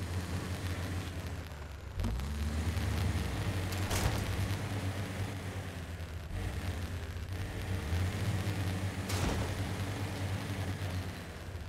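Tyres crunch over rocks and gravel.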